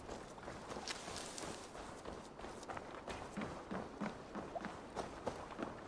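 Footsteps crunch quickly over dirt and wooden planks.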